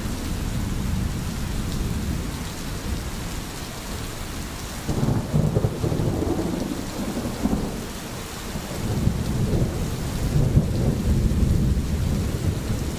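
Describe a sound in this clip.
A stream rushes and gurgles nearby.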